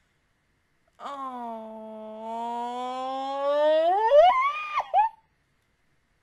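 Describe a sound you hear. A young woman sings a long held note close to a microphone.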